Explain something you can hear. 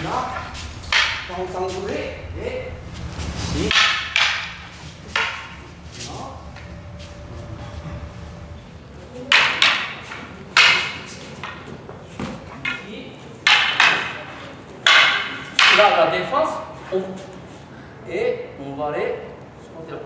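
Wooden staffs clack sharply together.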